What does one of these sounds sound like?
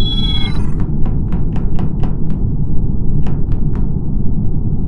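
A game countdown ticks with short, evenly spaced beeps.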